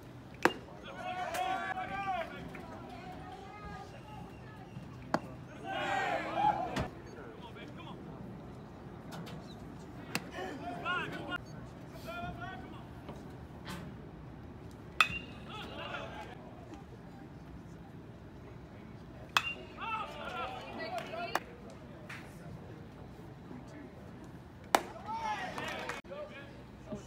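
Men shout and call out from the stands nearby.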